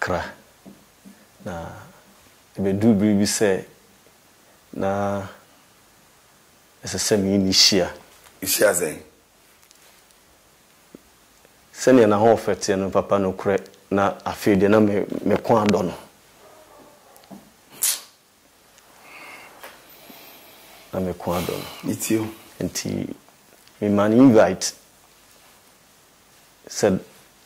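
A man speaks into a microphone in short, measured phrases with pauses between them.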